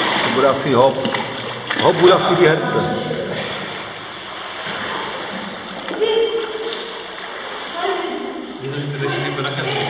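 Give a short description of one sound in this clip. Water splashes and laps in an echoing pool.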